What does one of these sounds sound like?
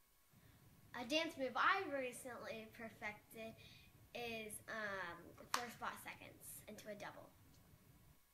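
A young girl talks brightly and giggles close by.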